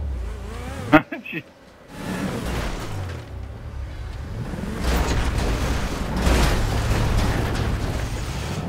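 Tyres rumble over wooden planks.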